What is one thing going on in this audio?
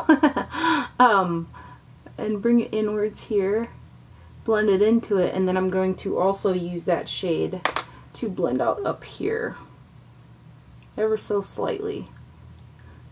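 A woman talks calmly and closely into a microphone.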